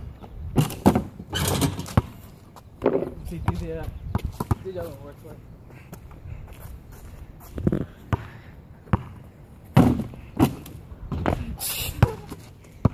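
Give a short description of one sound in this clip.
A basketball hits a backboard and rim.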